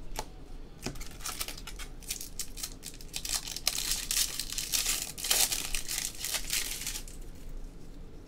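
A foil pack rips open.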